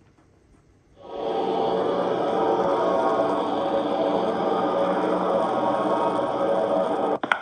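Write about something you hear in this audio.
Eerie, droning horror game music plays steadily.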